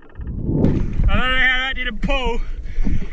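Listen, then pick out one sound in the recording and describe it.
A man shouts excitedly near the water's surface.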